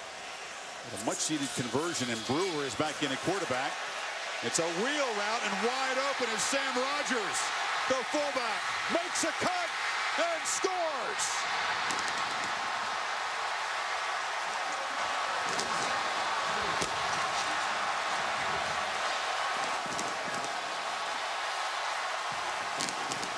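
A large crowd cheers and roars loudly in a stadium.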